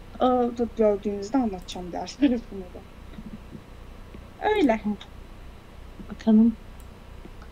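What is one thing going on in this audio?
A young woman speaks casually and close to a microphone.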